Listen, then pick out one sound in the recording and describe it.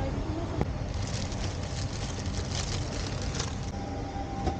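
A plastic wrapper rustles and crinkles.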